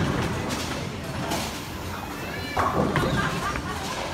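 A bowling ball thuds onto a lane floor.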